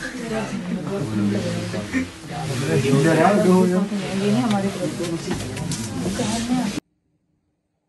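Young people talk through a phone call.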